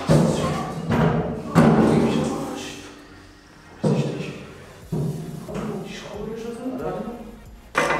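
A young man talks with animation nearby.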